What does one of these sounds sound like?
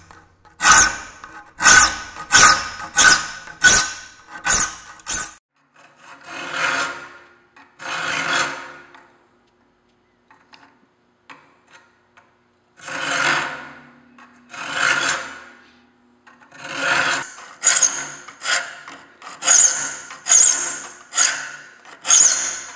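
A metal file rasps in quick strokes across saw teeth, pausing now and then.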